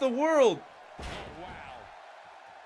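A wrestler slams onto the mat with a heavy thud.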